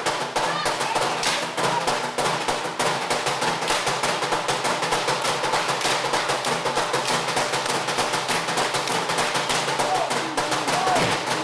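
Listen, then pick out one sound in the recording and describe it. A large group of men and women sings together loudly.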